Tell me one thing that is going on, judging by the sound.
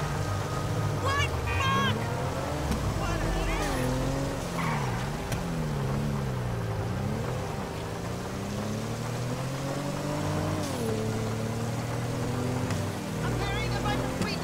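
Tyres squeal on wet pavement during sharp turns.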